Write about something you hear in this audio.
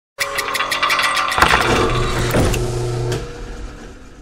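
A robotic arm clanks and whirs with sharp metallic clicks.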